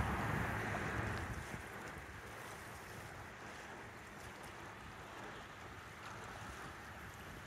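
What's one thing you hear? Wind blows outdoors, gusting strongly at first and then easing.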